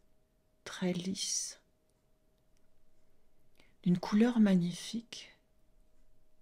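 An older woman speaks calmly and softly into a close microphone.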